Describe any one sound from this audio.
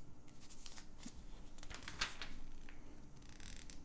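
Glossy catalogue pages rustle as they are turned.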